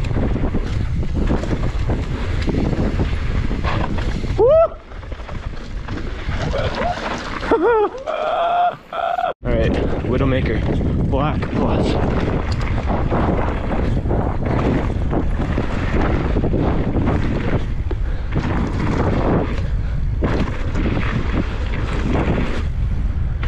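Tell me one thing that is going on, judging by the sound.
Wind buffets the microphone loudly throughout.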